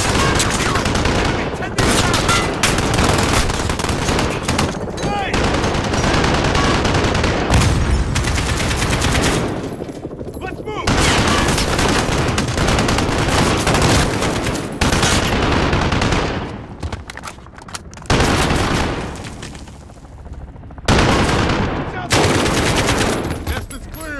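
Rapid rifle fire rattles in loud bursts.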